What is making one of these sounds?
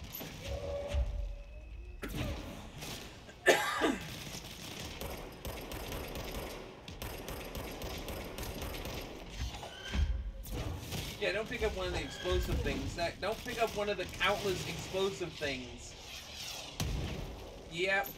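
Heavy objects crash and burst with loud bangs.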